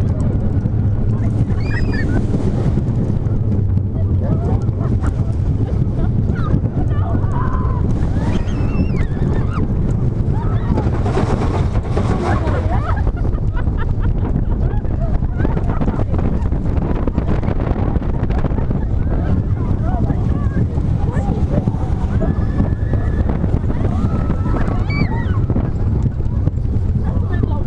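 Roller coaster wheels rumble and rattle along the track.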